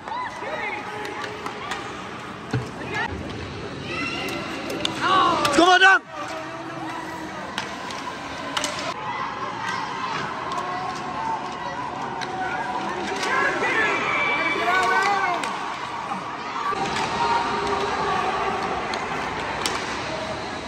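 A crowd of spectators shouts and cheers in an echoing arena.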